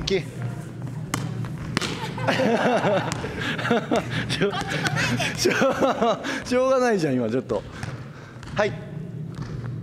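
Young women laugh.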